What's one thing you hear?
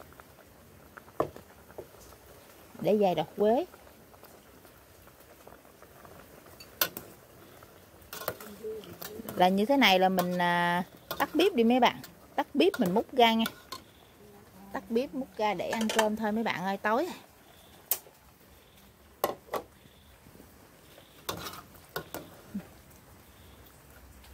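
Soup bubbles at a boil in a pot.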